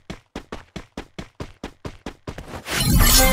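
Footsteps run quickly on sand.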